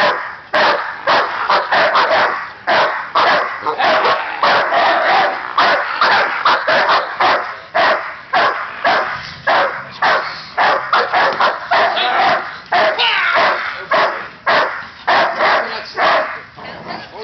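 Dogs bark loudly and rapidly nearby.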